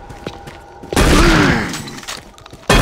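A monster screeches in pain.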